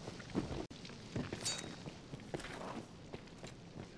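Footsteps scuff over stone.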